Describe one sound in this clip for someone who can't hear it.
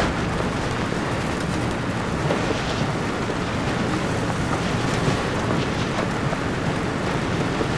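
Tyres crunch over rough dirt.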